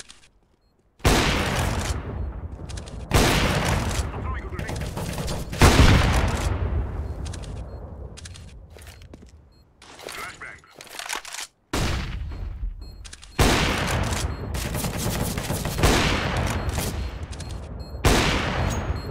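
A sniper rifle fires loud, booming shots that ring out and fade.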